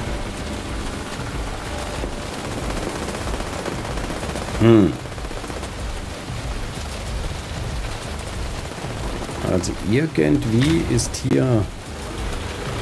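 Rain falls and wind blows steadily outdoors.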